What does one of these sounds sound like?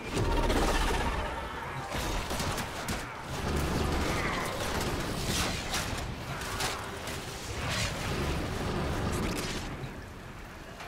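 Guns fire in rapid bursts with sharp blasts.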